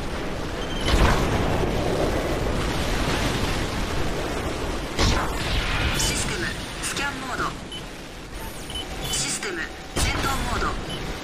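A mech's weapon fires with a heavy boom.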